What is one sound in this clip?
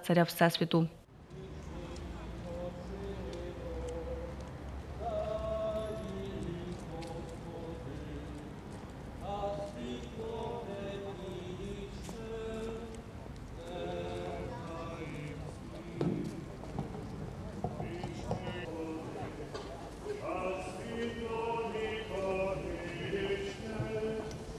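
A brass band plays a slow, mournful march outdoors.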